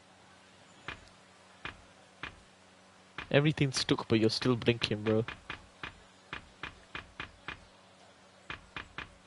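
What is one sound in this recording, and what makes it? Short menu clicks tick at an uneven pace.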